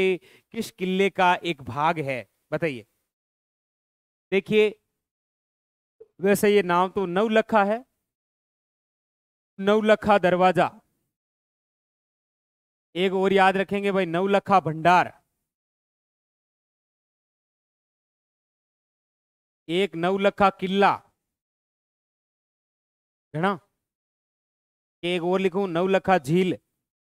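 A young man explains calmly into a close microphone, in short bursts with pauses.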